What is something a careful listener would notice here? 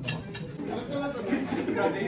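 Several men chat quietly nearby.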